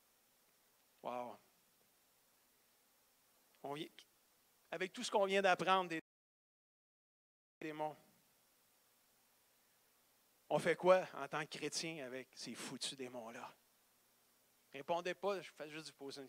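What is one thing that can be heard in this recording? A man speaks with animation into a microphone, heard through loudspeakers, with pauses between phrases.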